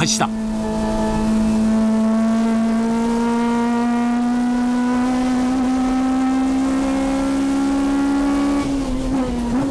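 A racing car engine roars at high revs, slowly rising in pitch.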